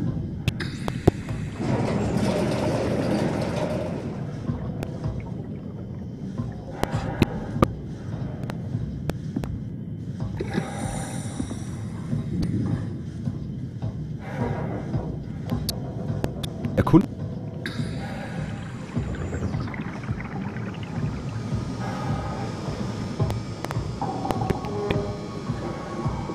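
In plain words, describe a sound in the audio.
Deep underwater rumbling drones steadily.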